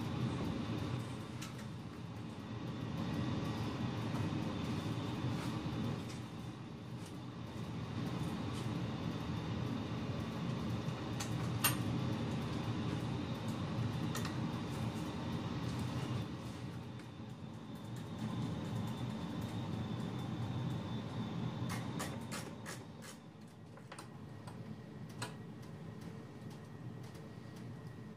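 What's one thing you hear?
Fingers knock and click against a metal amplifier chassis.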